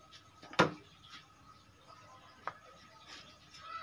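A tape measure is set down on wood with a light tap.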